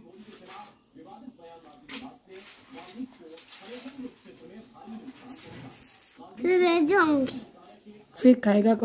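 A little girl talks playfully close by.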